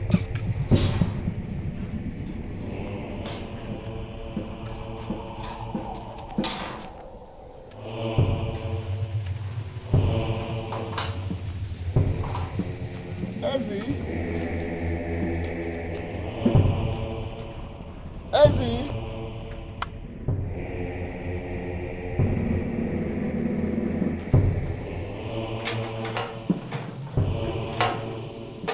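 A walking stick taps on the ground.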